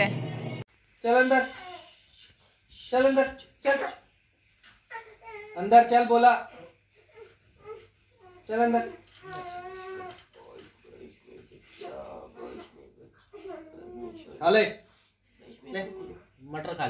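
A parrot chatters and squawks close by in short calls.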